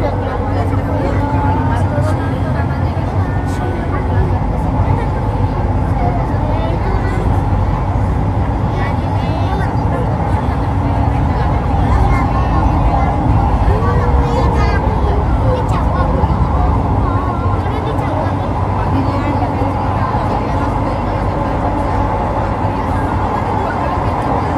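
A train rumbles steadily along a track.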